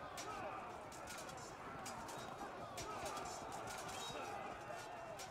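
Swords and spears clash in a battle.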